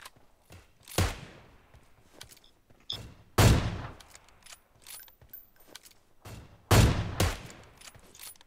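A sniper rifle fires single loud shots that echo away.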